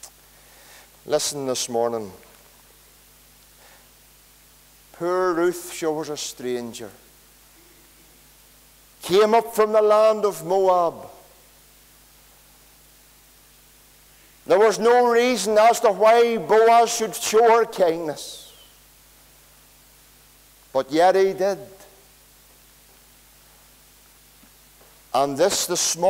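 A middle-aged man preaches with animation in short bursts through a microphone, echoing in a large room.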